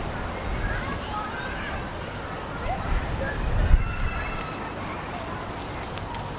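Young goats trot on grass.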